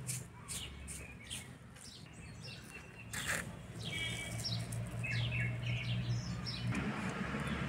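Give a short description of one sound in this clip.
A dry seed pod taps lightly against a wooden board.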